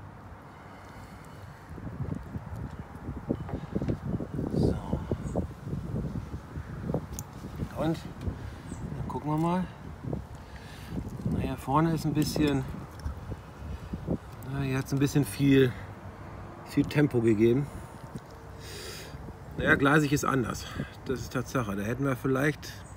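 A fork scrapes and taps against a ceramic plate.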